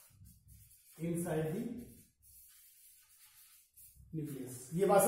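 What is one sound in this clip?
A marker squeaks and scratches on a board.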